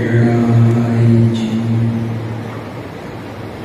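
A man speaks into a microphone, drawing out a long sound, heard through a loudspeaker.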